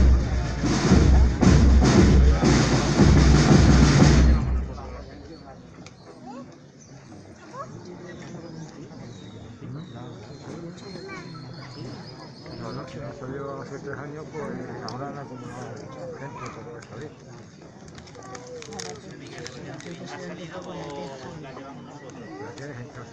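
A crowd of men and women chatters and murmurs nearby.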